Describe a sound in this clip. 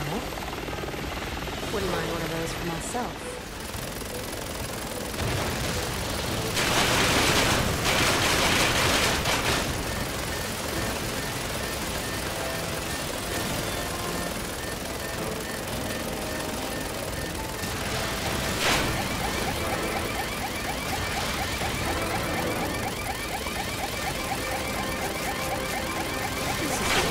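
A helicopter's rotor drones steadily.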